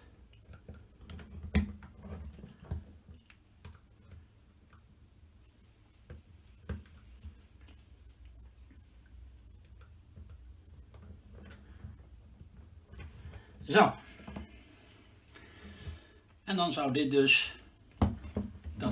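Metal parts click and clatter as a hand handles a frame.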